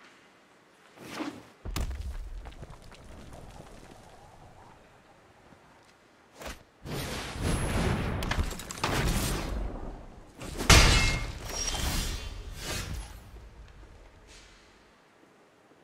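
Game sound effects whoosh and chime as cards are played.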